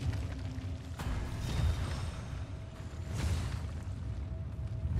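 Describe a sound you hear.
Rocks crash and shatter.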